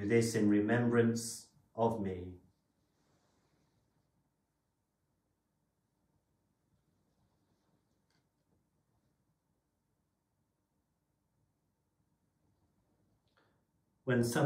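A man speaks calmly and clearly, close by, then falls silent.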